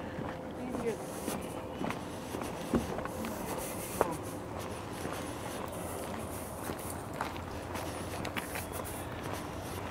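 Footsteps fall lightly outdoors.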